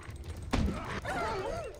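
A wolf whines.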